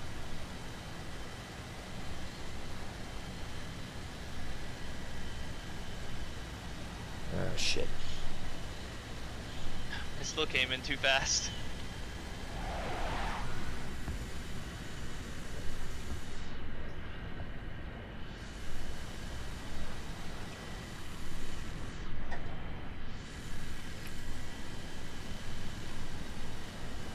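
A jet engine roars steadily with a low rumble.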